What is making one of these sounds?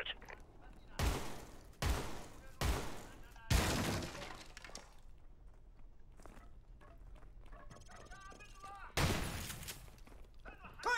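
Gunshots bang loudly, each with a short echo.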